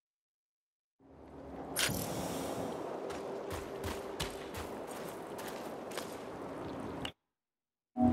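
Footsteps crunch over the ground.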